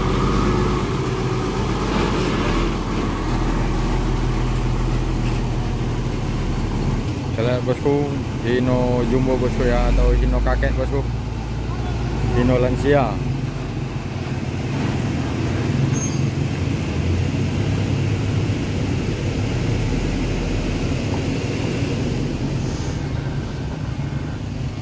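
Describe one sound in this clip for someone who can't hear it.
A heavy truck engine rumbles low and steadily as the truck drives slowly away.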